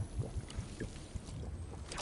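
A character gulps down a drink.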